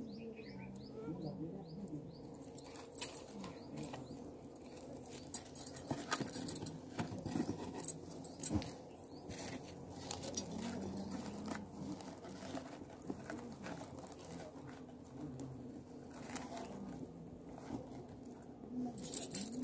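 Dry twigs and straw rustle as hands push them into a fire.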